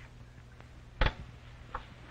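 A radio knob clicks as it is turned.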